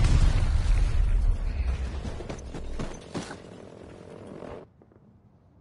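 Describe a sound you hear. Wind rushes past a falling parachutist.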